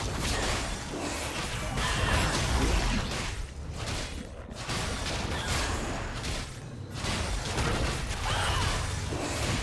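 Magic blasts crackle and burst in a fantasy battle.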